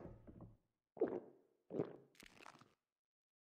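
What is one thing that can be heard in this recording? Someone gulps down a drink.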